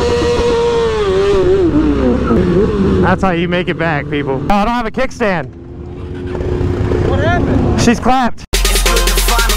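A motorcycle engine slows down and revs in short bursts up close.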